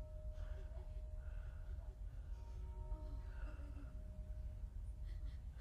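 A lute is plucked softly in the distance.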